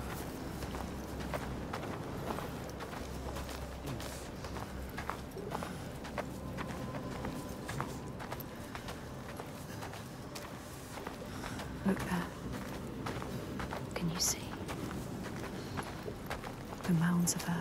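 Footsteps crunch on dry dirt and gravel.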